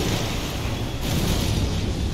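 A blast of magic bursts with a loud boom.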